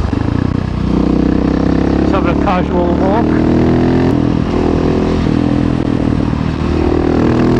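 A motorcycle engine hums steadily and changes pitch as it rides along.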